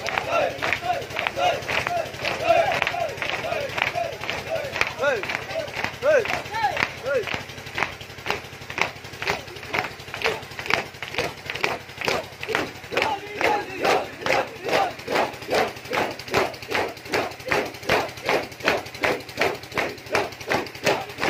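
A crowd of men chants loudly outdoors.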